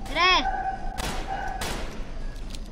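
A pistol fires two sharp shots.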